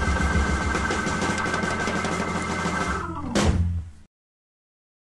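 An electric guitar plays a blues tune.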